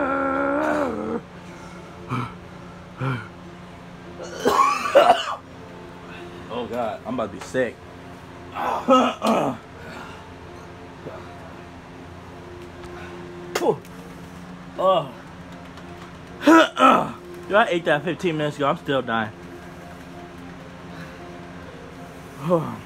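A young man talks and shouts with animation nearby.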